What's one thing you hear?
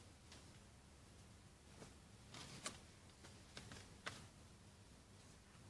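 Plastic packaging crinkles and crackles.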